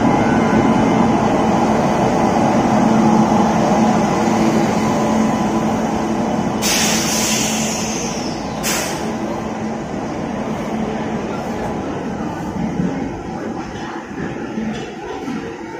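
A train rumbles and clatters slowly past close by.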